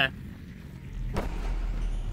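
A sword whooshes through the air in a quick slash.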